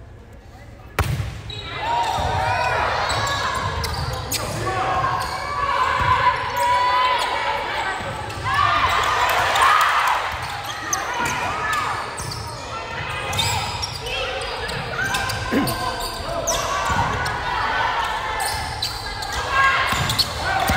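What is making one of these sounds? A volleyball is hit with sharp slaps.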